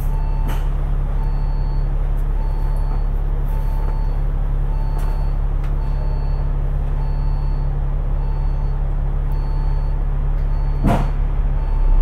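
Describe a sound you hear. A turn signal ticks in a steady rhythm.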